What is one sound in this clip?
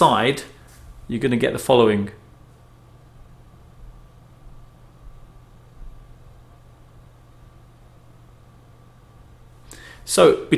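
A computer's fans hum steadily and quietly.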